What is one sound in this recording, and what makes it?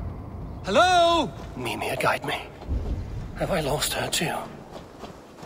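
A man calls out questioningly.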